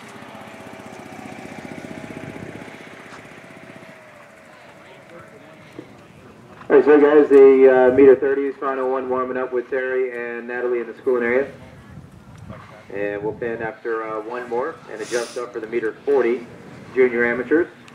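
A horse canters on sand.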